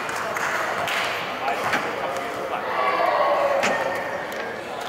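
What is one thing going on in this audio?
Sneakers squeak on a hard court in a large echoing hall.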